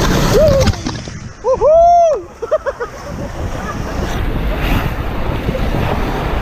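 White-water rapids rush and roar loudly close by.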